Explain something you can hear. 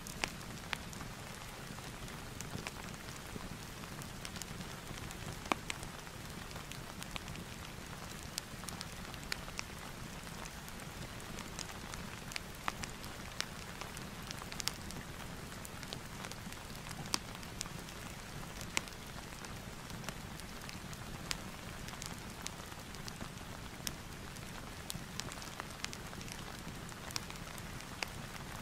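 A pen scratches and taps softly on paper.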